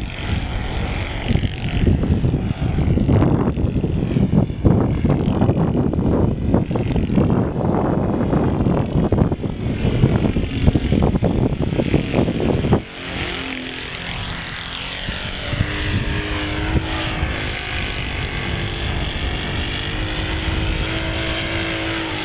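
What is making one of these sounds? A model plane's engine whines overhead, rising and falling in pitch.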